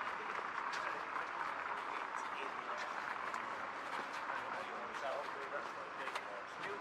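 Footsteps tap on paving stones close by.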